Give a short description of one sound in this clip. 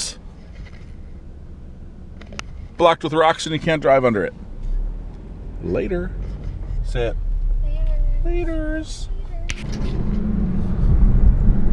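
A car engine hums and road noise rumbles.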